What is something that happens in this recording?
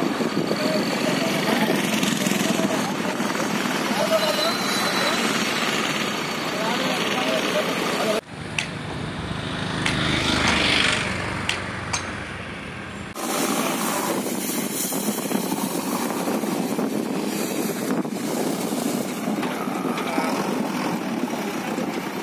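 A digger's diesel engine rumbles and roars nearby.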